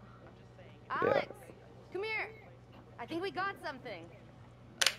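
A young woman calls out excitedly.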